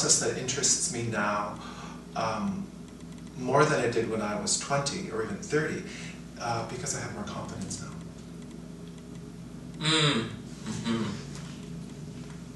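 A man speaks calmly and with animation close to a microphone.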